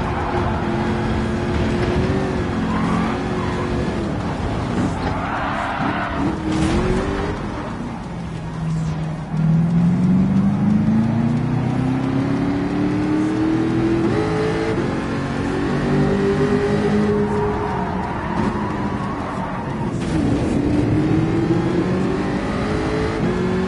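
A racing car engine roars, revving up and down through the gears.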